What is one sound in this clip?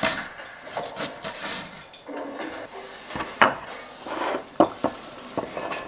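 A knife chops an onion on a wooden board.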